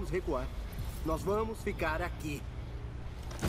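A young man speaks with resolve.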